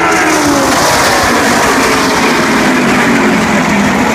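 Race car engines roar past at high speed.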